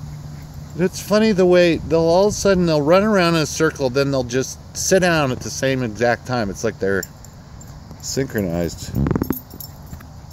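A man calls out in a high, playful voice from a short distance outdoors.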